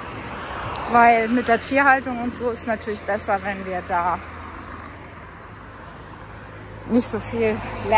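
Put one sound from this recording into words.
A truck drives past on a nearby road.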